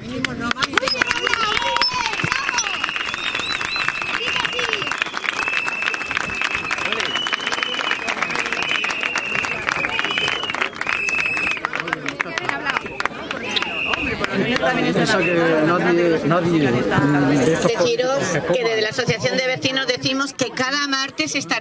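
A crowd murmurs and talks nearby outdoors.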